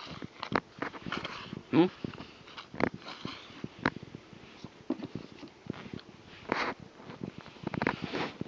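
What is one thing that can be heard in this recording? Handling noise thumps and scrapes close by.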